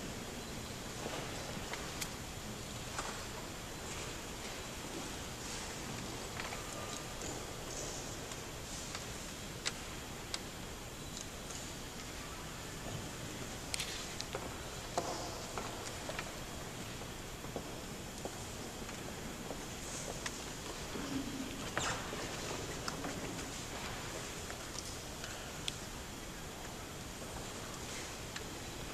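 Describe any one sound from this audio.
An audience murmurs and shifts quietly in a large echoing hall.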